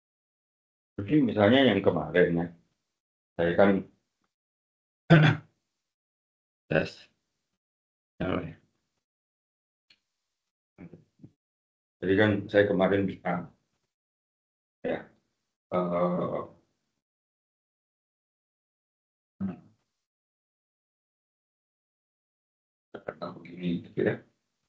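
A man speaks calmly in short bursts close by.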